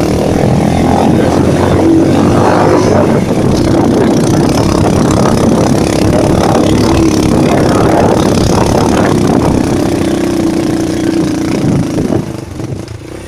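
A motorcycle engine rumbles loudly up close.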